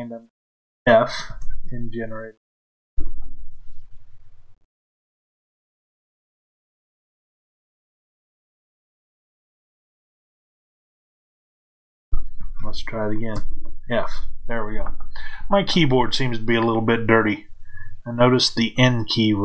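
A middle-aged man talks calmly into a close microphone, with pauses.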